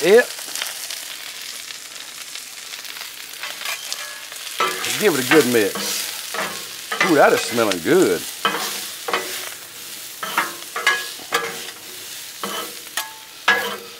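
Food sizzles on a hot griddle.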